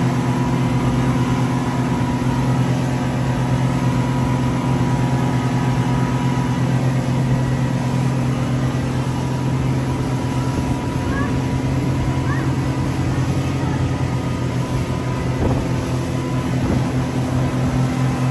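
Wind buffets outdoors.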